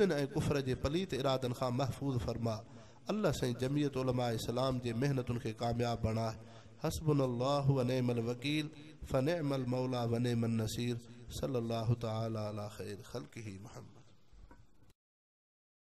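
A middle-aged man chants prayers into a microphone in a melodious, drawn-out voice, heard through loudspeakers.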